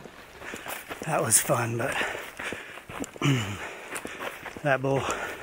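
A man speaks close by, slightly out of breath.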